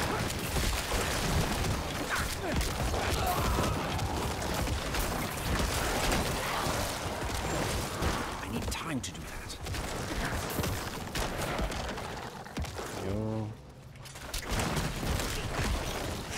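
Game combat effects crash and clatter rapidly.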